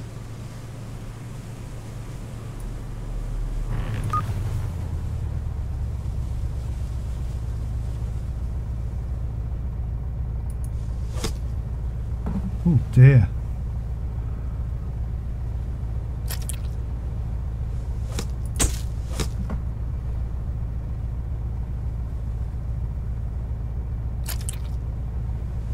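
A boat engine hums low and steadily.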